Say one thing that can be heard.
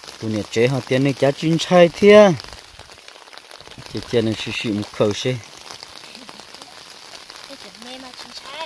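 Shallow water splashes softly.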